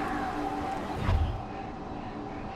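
A muffled blast thumps close by.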